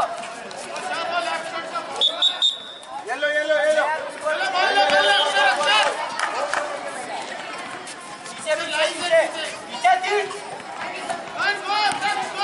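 A man shouts instructions loudly.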